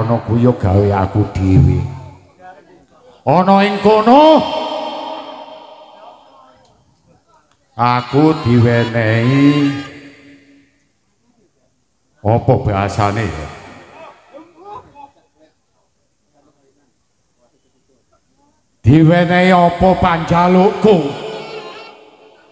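A man speaks and sings loudly in bursts through a microphone and loudspeakers.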